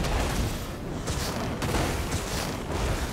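Lightning crackles sharply.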